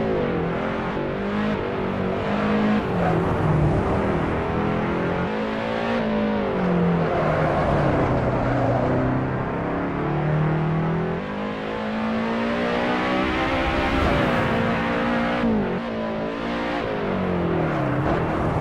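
A rally car engine revs hard, rising and falling with each gear change.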